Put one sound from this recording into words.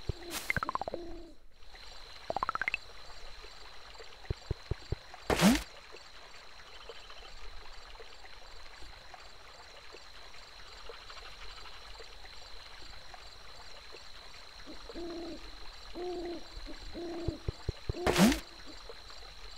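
Short electronic blips and chimes sound from a video game.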